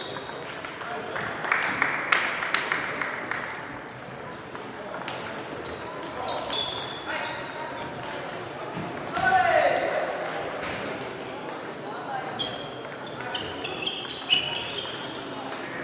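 Shoes squeak on the hall floor.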